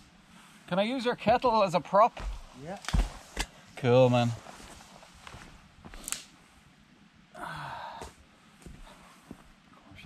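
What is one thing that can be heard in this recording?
A fire crackles and pops softly.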